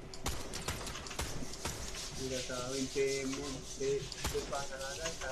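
Gunshots crack in quick bursts from a video game.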